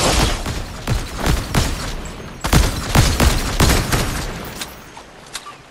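Rifle shots ring out in quick succession, echoing.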